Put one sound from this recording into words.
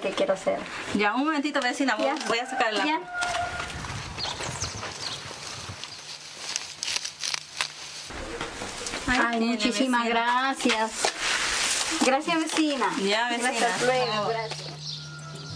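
A woman speaks warmly close by.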